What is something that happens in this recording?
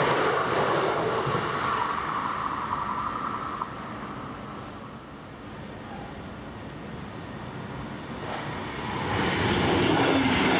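A train rumbles past on the tracks.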